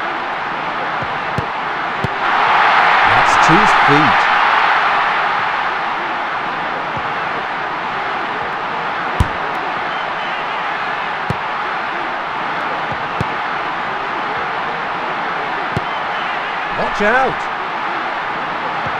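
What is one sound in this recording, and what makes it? A stadium crowd roars steadily, swelling loudly for a few seconds.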